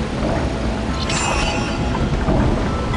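A bright, shimmering chime rings out and quickly fades.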